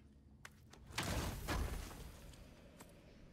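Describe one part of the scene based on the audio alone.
A heavy chest lid creaks open.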